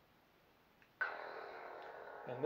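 A toy lightsaber powers up with a sudden electronic burst.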